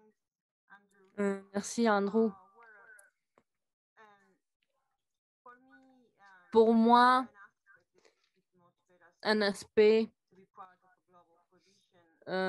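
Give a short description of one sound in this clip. A woman speaks thoughtfully over an online call, pausing often.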